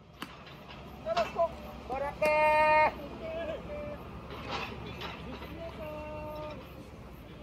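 Young players shout calls across an open field.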